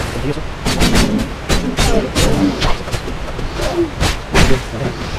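Metal weapons clash and thud in a fight.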